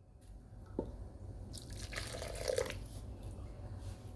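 Water pours into a mortar.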